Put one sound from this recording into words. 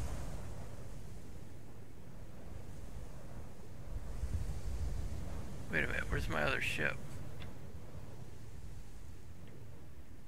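Ocean waves wash and rumble softly.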